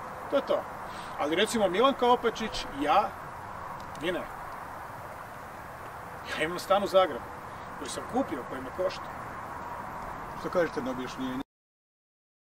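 A middle-aged man speaks calmly into microphones outdoors.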